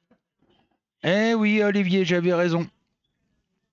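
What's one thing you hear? A middle-aged man speaks loudly and briefly into a close headset microphone.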